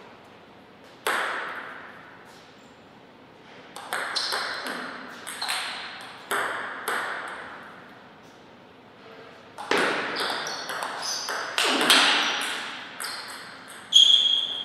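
A table tennis ball clicks back and forth off paddles and the table, in an echoing hall.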